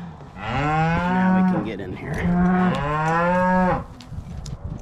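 A calf bellows loudly nearby.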